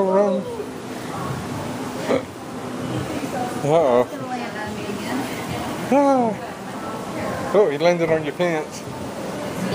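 A woman speaks excitedly close by.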